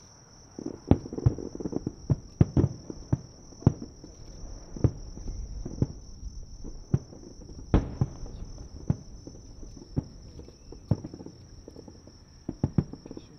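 Fireworks crackle and pop after bursting.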